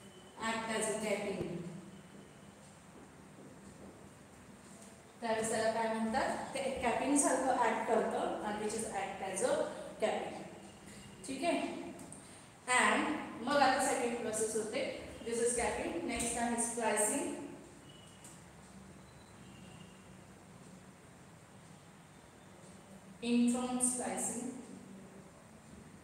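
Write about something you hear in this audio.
A young woman speaks calmly and clearly, explaining at a steady pace.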